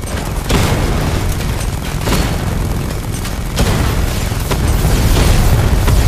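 Explosions boom overhead.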